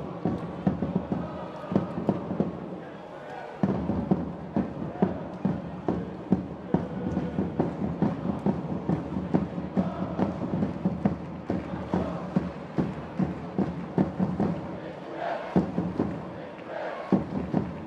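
A crowd claps and cheers in a large echoing arena.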